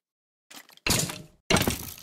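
A skeleton rattles and clacks nearby.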